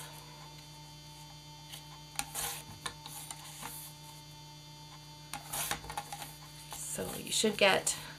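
Cardboard strips rustle and tap as hands handle them.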